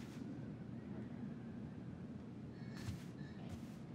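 Footsteps tread softly across a floor.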